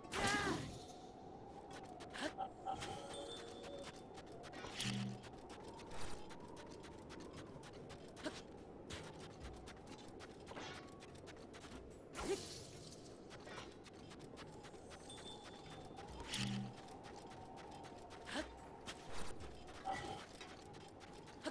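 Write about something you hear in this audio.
A shield slides over sand with a steady scraping hiss.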